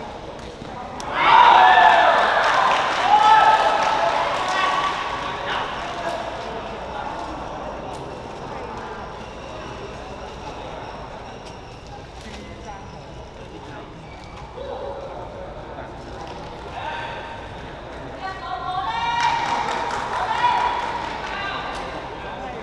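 Two young men talk with each other close by, in a large echoing hall.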